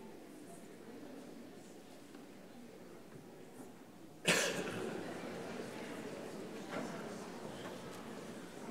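A large crowd murmurs and shuffles in a big echoing hall.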